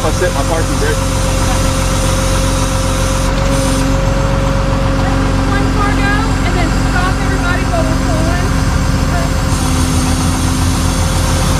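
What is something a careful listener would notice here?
A tow truck engine idles nearby with a steady low rumble.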